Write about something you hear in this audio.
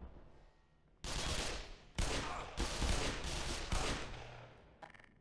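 Loud gunshots ring out in quick succession and echo.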